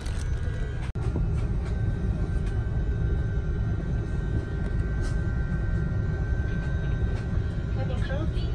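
A jet engine hums in a steady low drone.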